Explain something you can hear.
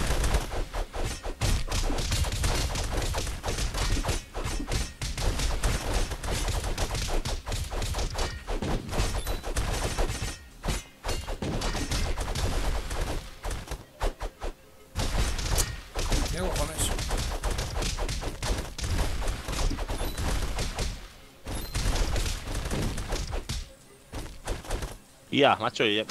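Game sword clashes and hits ring out rapidly.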